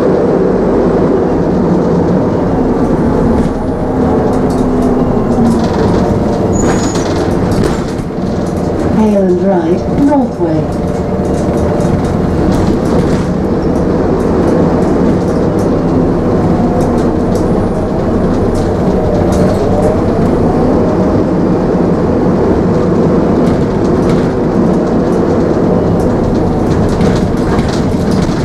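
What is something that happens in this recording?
A bus engine hums and rumbles steadily as the bus drives along.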